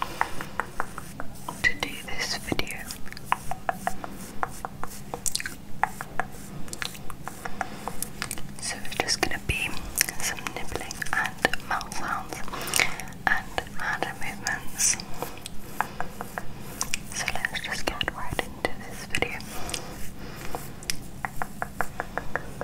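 Bristles of a small brush scratch and tap against a microphone.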